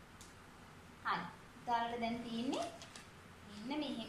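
A young woman speaks nearby in a lively, sing-song way.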